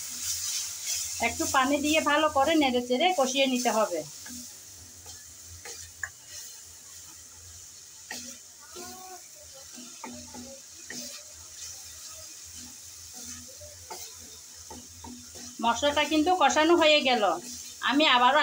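A wooden spoon scrapes and stirs against a metal pan.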